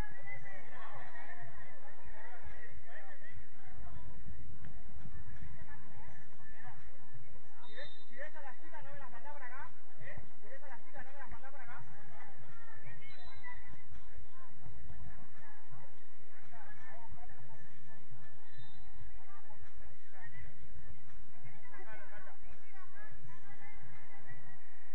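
Young players shout and call to each other across an open field at a distance.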